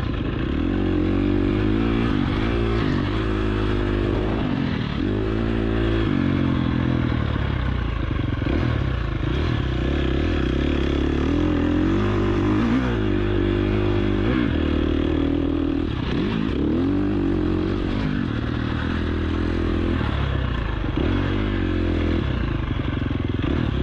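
A dirt bike engine revs hard, rising and falling in pitch as gears shift.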